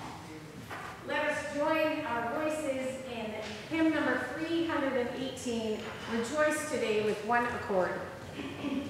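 Men and women sing a hymn together in a large echoing hall.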